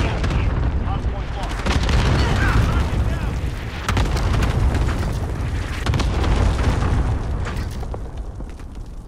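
Gunfire and explosions rumble loudly nearby.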